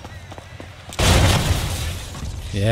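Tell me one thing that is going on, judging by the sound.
A vehicle slams into a person with a heavy crash.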